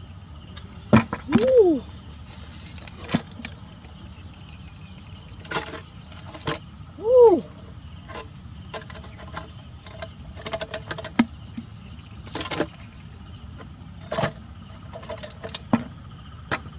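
A plastic pipe knocks and taps against a plastic bucket.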